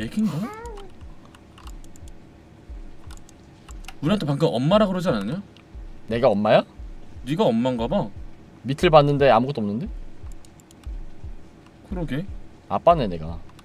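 Two young men talk with animation into a nearby microphone.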